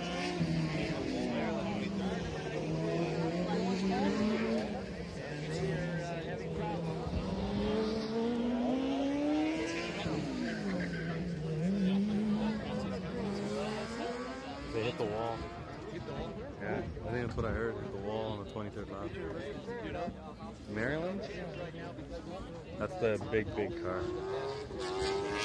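A car engine revs up and down on a track.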